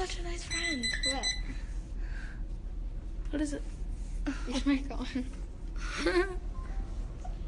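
A young girl talks casually and close by.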